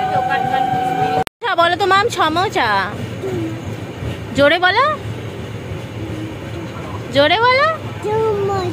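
A train rumbles steadily in the background.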